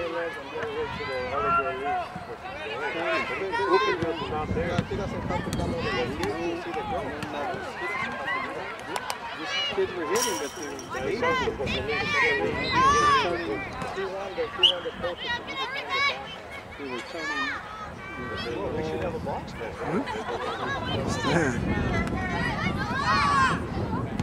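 People shout and cheer outdoors from the sidelines, close by and far off.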